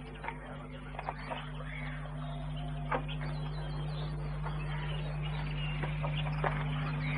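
A wooden gate creaks open and clicks shut.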